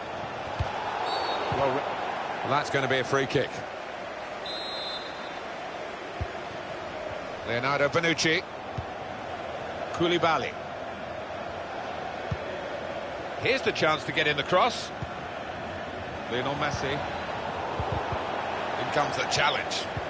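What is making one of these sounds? A football is kicked with short, dull thuds now and then.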